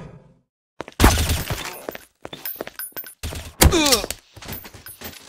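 Gunshots ring out close by.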